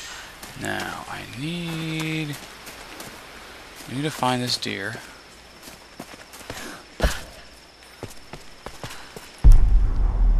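Footsteps crunch on leafy ground.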